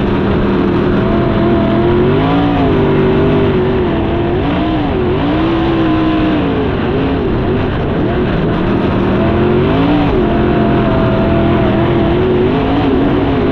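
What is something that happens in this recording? A race car engine roars loudly close by, its pitch rising and falling as it speeds up and slows.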